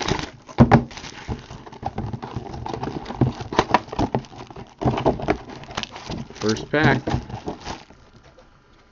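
Plastic wrap crinkles and rustles as hands tear it off a box.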